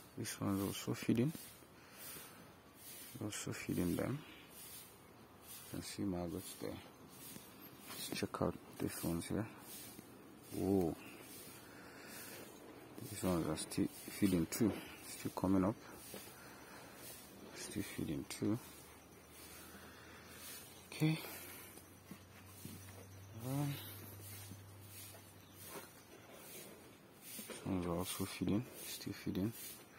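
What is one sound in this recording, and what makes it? A hand rustles and stirs through dry loose grain.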